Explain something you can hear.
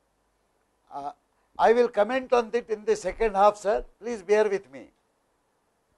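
A middle-aged man speaks with animation into a close microphone.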